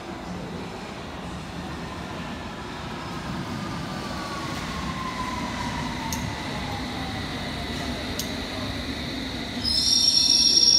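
An underground train rumbles into the station.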